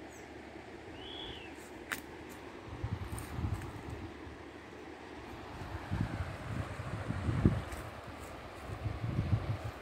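Shallow river water ripples and laps gently at the bank.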